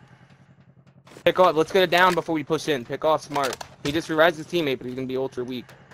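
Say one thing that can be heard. A magazine is pulled from a rifle and clicks back into place.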